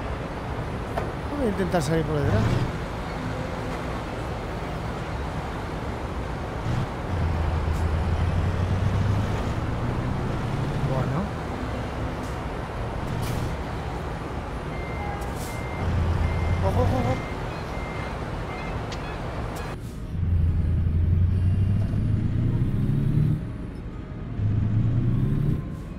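A diesel truck engine rumbles steadily and revs up and down.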